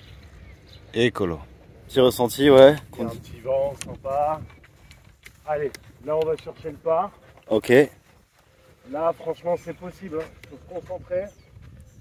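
A man talks calmly close by.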